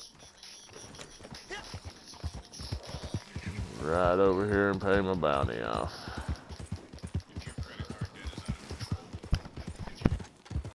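A horse's hooves thud rapidly as it gallops over soft ground.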